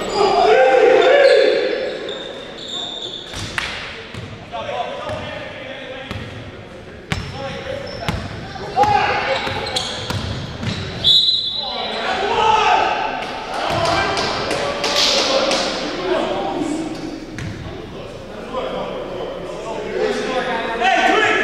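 Men shout and call out to each other across the court.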